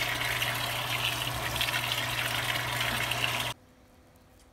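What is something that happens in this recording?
A washing machine hums and whirs steadily.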